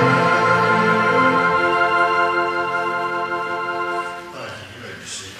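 A choir sings a hymn in a large echoing hall.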